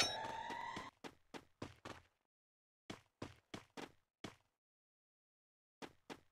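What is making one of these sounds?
Footsteps thud on a wooden floor at a steady pace.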